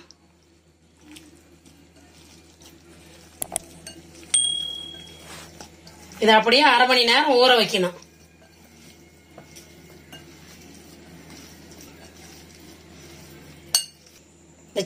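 Hands squish and mix raw meat in a glass bowl.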